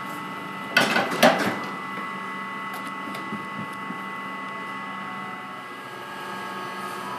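An oven machine hums steadily.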